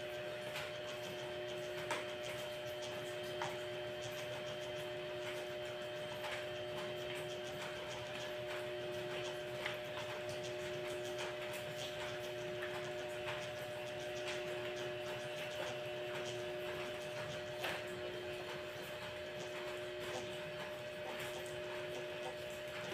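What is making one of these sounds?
A mop swishes across a hard floor.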